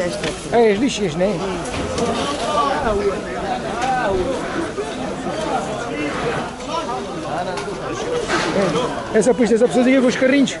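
A crowd of people chatter all around, close by, outdoors.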